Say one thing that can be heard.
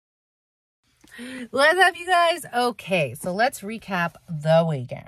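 A woman talks with animation close to a phone microphone.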